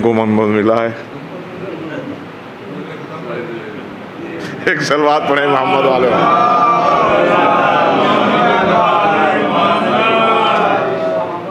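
An older man speaks with feeling through a microphone.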